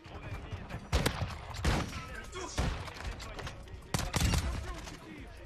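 Loud single shots boom with a short echo.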